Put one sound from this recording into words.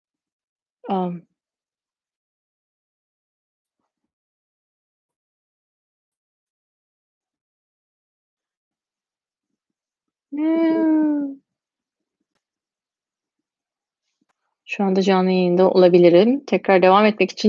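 A young woman speaks calmly and close by, with long pauses.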